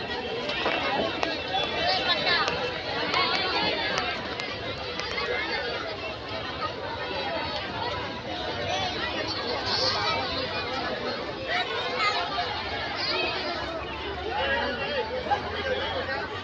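A crowd of men, women and children chatters all around.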